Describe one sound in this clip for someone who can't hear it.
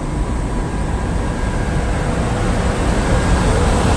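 An electric locomotive hums loudly as it passes close by.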